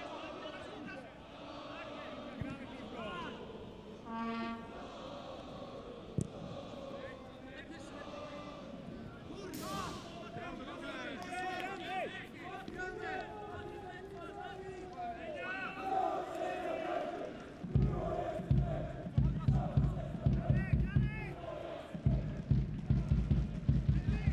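A large stadium crowd chants and sings steadily in the distance.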